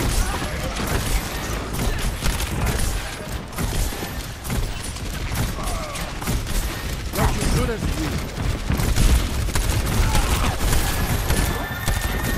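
Explosions burst with booming thuds.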